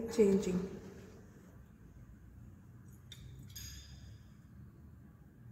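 Liquid swirls softly in a glass flask.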